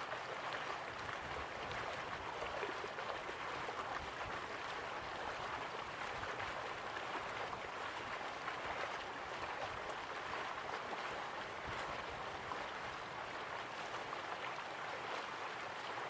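Waterfalls rush and splash steadily.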